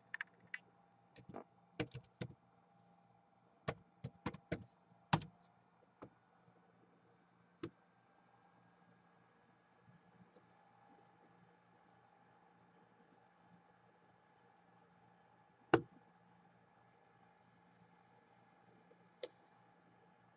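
Keys on a laptop keyboard click in short, uneven bursts.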